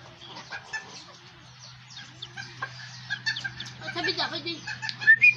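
Chickens cluck and chirp nearby.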